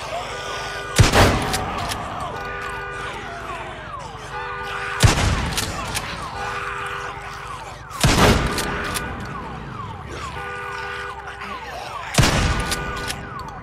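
A shotgun fires loud blasts that echo down a tunnel.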